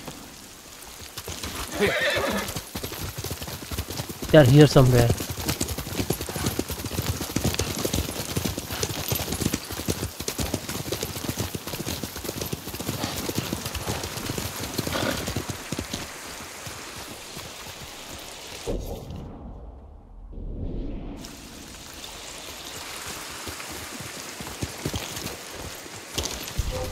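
Horse hooves pound rapidly on the ground at a gallop.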